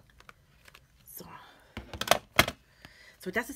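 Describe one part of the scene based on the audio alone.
A card is picked up and taps against a hard surface.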